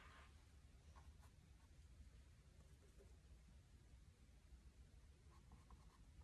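A bristle brush dabs paint onto canvas.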